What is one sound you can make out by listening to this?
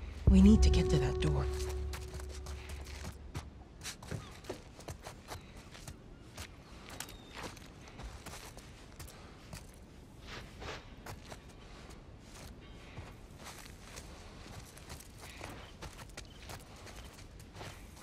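Footsteps shuffle softly over gritty ground.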